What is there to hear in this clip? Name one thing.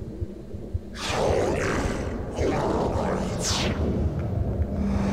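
A young woman gasps in fear.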